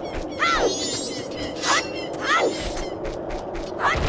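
A game fairy chimes with bright twinkling sparkles.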